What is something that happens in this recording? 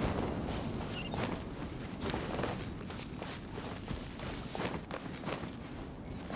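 Footsteps patter on rock and grass.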